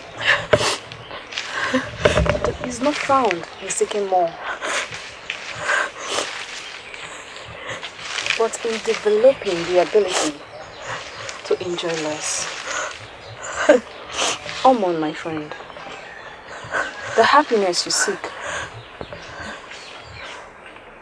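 A young woman speaks with agitation up close.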